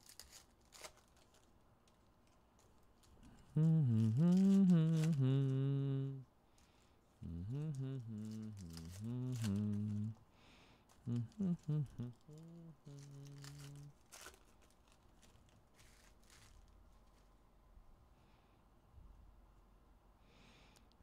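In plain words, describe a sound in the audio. A foil wrapper crinkles as cards are handled.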